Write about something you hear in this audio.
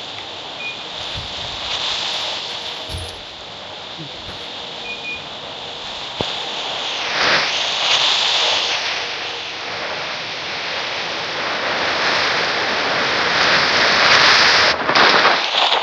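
Wind rushes steadily and loudly past.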